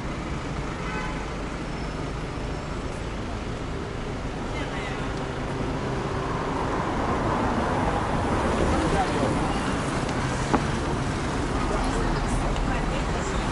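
Footsteps scuff along a pavement.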